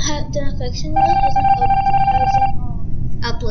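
An electronic tone hums steadily for a moment.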